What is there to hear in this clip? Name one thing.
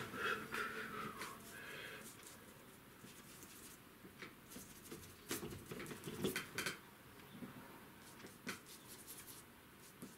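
A brush dabs paint on a palette.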